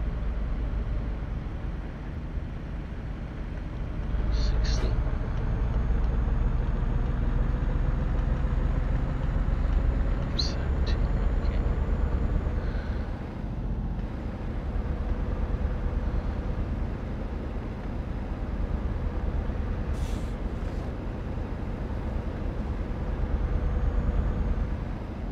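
A truck engine drones low and steady while driving.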